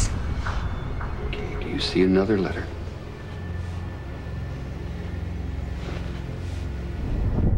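A middle-aged woman speaks softly and slowly, close by.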